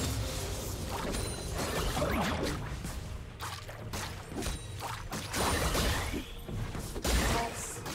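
Game characters clash with sharp hits and impacts.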